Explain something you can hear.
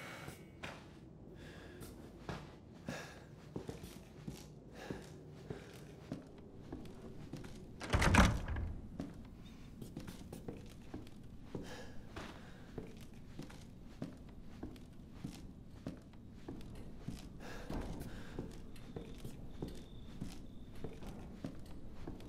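Footsteps creak slowly across old wooden floorboards.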